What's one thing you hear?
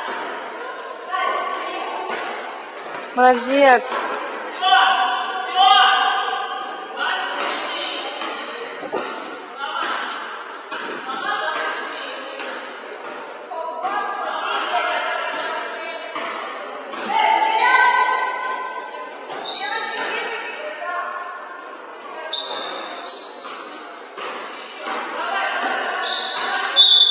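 Young women shout to each other across a large echoing hall.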